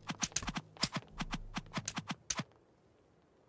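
Video game sword strikes land in a quick series of sharp hits.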